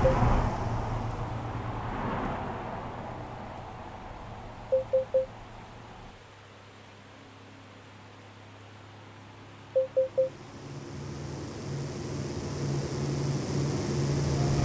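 A truck engine hums steadily, quieting for a while and then growing louder again.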